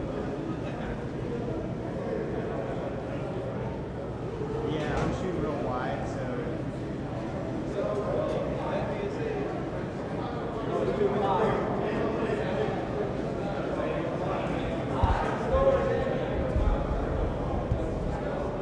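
Men's voices murmur and call out in a large echoing hall.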